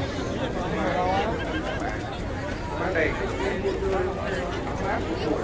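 A large crowd of men and women chatters and calls out all around.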